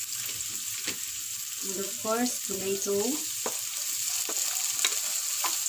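A spatula knocks and scrapes against a pan.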